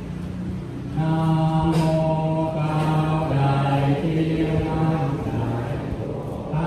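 A large crowd of men and women sings together in unison.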